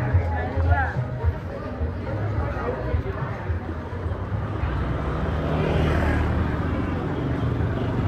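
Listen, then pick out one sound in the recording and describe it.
Motorbike engines hum as scooters ride slowly toward the listener.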